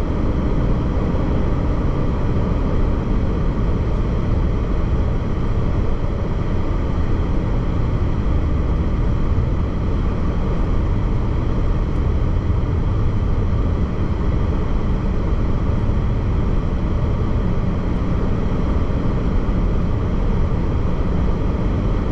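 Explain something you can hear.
Tyres roar steadily on a highway from inside a moving car.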